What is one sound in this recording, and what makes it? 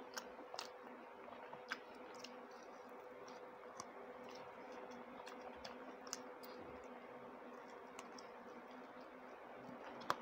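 A woman chews food with wet, smacking mouth sounds close to a microphone.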